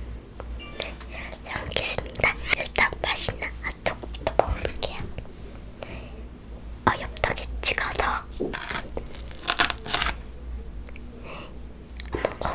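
Food crunches and squelches close to a microphone.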